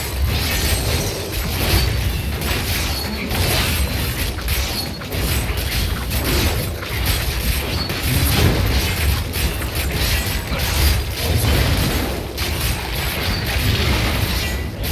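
Game spells crackle and burst in a steady stream of battle effects.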